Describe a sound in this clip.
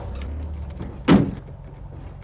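A gear lever clunks into place.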